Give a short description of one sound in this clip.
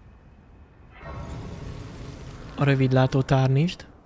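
A shimmering, choir-like chime swells up and rings out.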